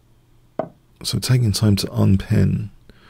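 An older man speaks calmly into a close microphone.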